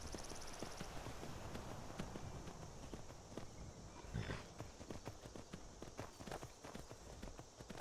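A horse's hooves thud steadily on the ground at a gallop.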